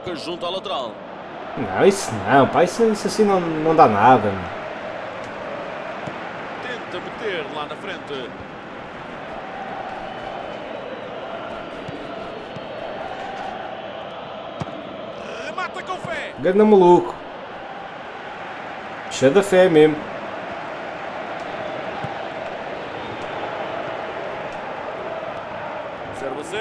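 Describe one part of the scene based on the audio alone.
A large crowd murmurs and cheers steadily in a big open stadium.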